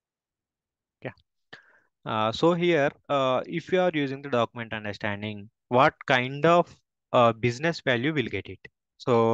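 A man speaks calmly through a microphone, as if on an online call.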